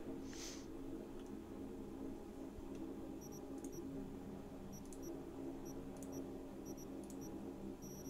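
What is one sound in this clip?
Soft electronic blips sound as a pointer moves over menu items.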